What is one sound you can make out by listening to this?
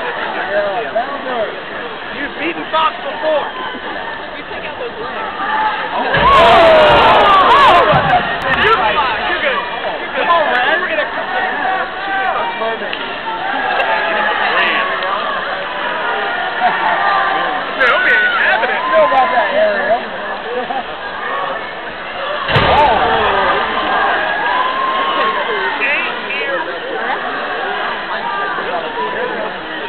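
A large crowd murmurs and chatters in an echoing indoor arena.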